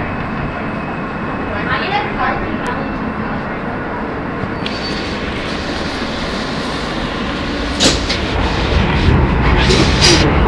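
A subway train rumbles loudly along the tracks.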